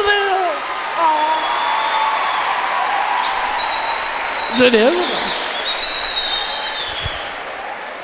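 A large crowd laughs and cheers.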